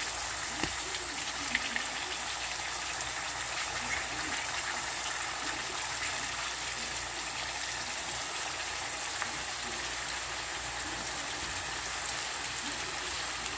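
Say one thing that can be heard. A utensil scrapes and taps against a pan.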